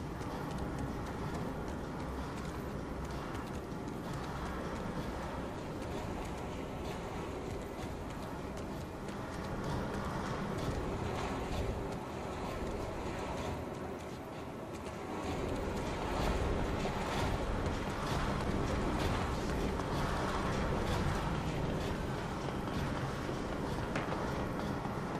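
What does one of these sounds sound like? Machinery hums steadily in a large echoing hall.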